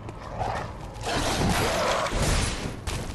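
A blade swishes through the air in a strike.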